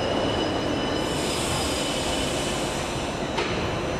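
Train doors hiss open.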